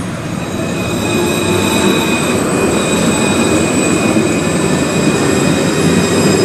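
A tram pulls into a stop with a steady electric whine.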